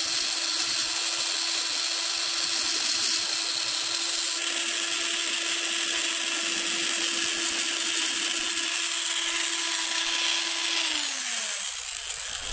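A rotary tool whines steadily at high speed, then winds down.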